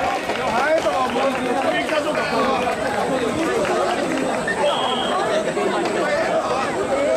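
A crowd of men chant loudly in rhythm close by.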